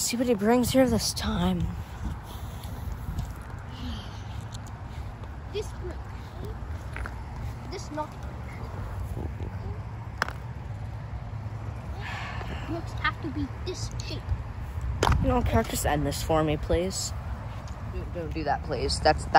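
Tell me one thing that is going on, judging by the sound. A child talks close up with animation.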